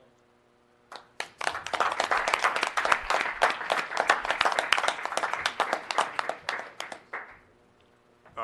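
A group of people claps and applauds.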